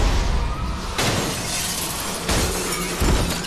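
Window glass shatters.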